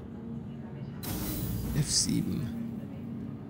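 A sliding door opens with a hiss.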